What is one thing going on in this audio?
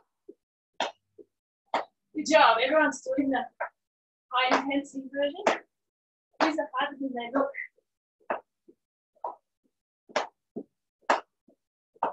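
Feet land with soft thuds on a hard floor as a woman jumps.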